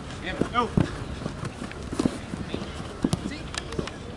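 A football thuds off a kicking foot.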